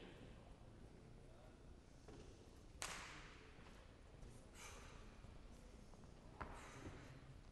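Footsteps thud on a wooden platform in a large echoing hall.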